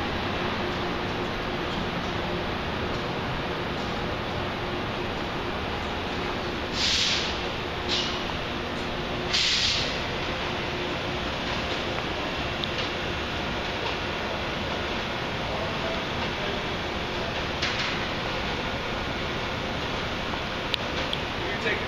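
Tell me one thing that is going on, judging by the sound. A diesel train engine rumbles steadily nearby.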